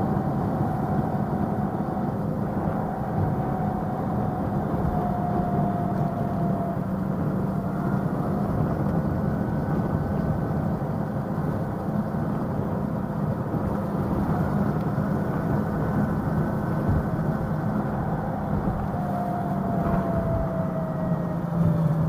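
A scooter motor hums steadily while riding along a street.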